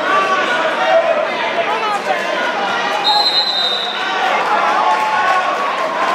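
A crowd of spectators cheers and shouts loudly in an echoing gym.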